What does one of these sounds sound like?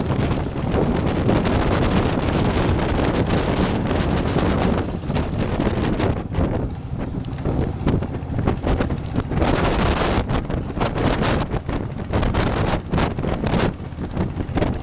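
Water rushes and splashes along a moving boat's hull.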